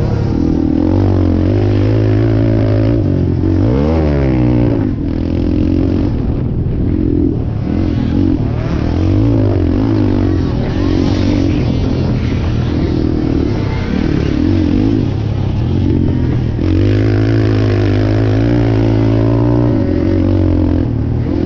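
A dirt bike engine revs hard close by, rising and falling as the rider shifts gears.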